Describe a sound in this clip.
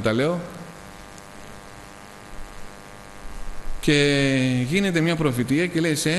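A middle-aged man speaks slowly into a microphone, with a slight echo.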